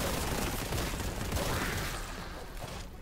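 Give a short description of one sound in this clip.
Heavy gunfire blasts rapidly.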